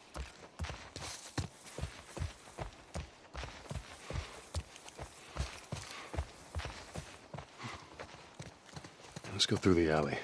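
Footsteps crunch steadily over grass and gravel.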